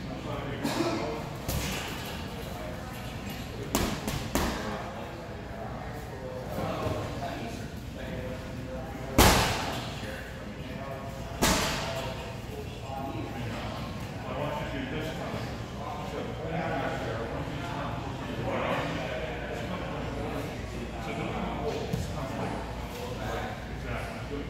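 Men talk at a distance in a large echoing hall.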